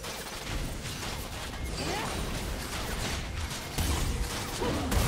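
Game spell effects crackle and whoosh during a battle.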